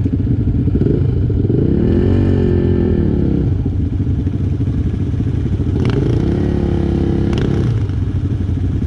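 A quad bike engine revs up and down.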